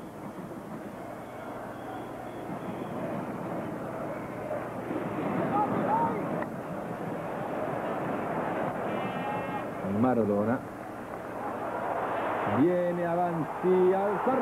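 A large stadium crowd roars steadily, with swelling cheers.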